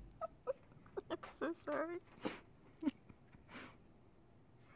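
A young woman laughs near a microphone.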